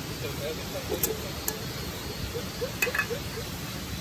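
A metal pot clanks onto a camping stove.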